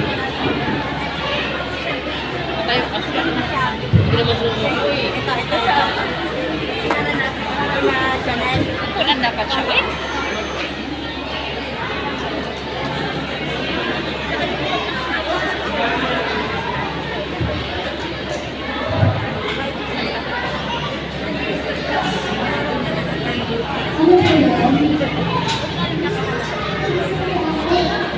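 A large crowd of children chatters loudly in a big echoing hall.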